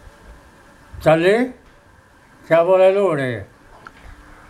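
An elderly man speaks calmly and close by in two short phrases.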